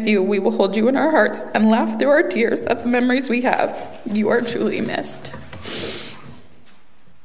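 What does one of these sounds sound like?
A young woman speaks emotionally into a microphone in an echoing hall.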